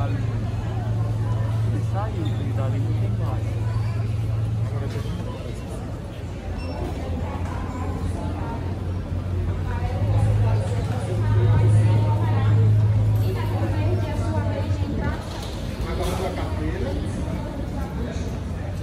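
A crowd of people chatter and murmur in a large echoing hall.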